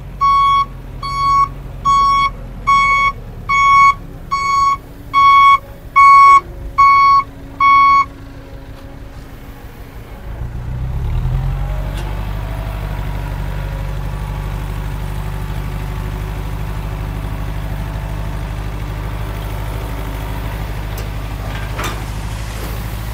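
A truck engine rumbles, then grows louder and steadier as the bed lifts.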